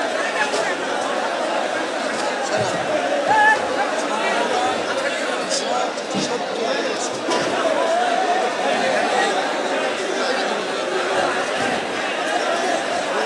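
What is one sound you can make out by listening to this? A crowd of men talk over one another close by.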